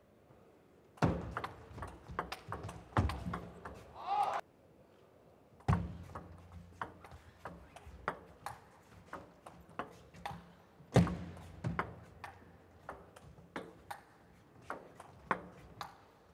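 A table tennis ball clicks back and forth between paddles and table in quick bursts.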